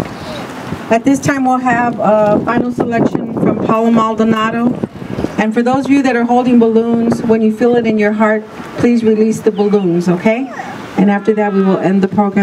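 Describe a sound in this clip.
A middle-aged woman speaks calmly through a microphone and loudspeaker.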